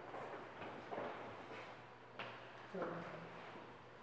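A wooden bench creaks and thumps as someone sits down.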